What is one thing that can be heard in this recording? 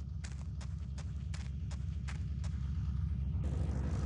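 A motorcycle engine hums and grows louder.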